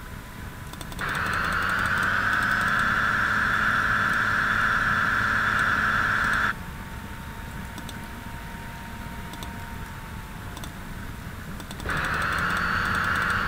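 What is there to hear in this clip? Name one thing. A train engine hums steadily as the train rolls along the tracks.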